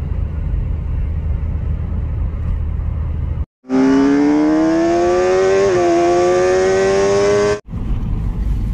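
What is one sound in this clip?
A car's road noise rumbles steadily from inside the moving car.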